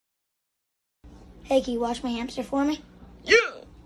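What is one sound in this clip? A boy speaks close by.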